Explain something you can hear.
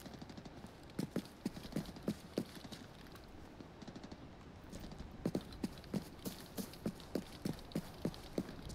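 Footsteps thud at an even pace on hard ground.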